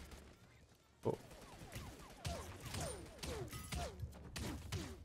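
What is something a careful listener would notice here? A bow twangs as arrows are shot again and again.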